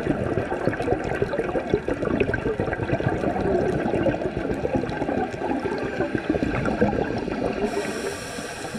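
Bubbles from a diver's regulator gurgle and rush loudly underwater.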